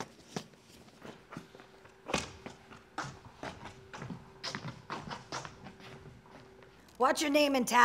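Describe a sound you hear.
Footsteps tap and shuffle on a wooden stage.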